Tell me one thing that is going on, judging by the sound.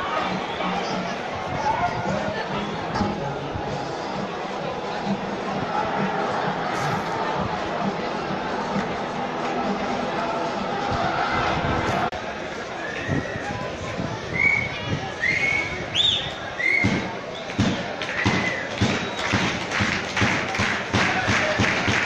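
A large crowd chatters and murmurs outdoors.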